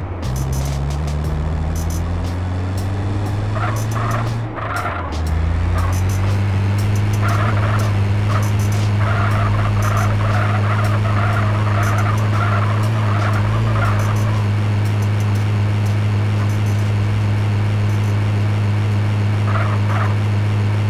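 Tyres hum on a road.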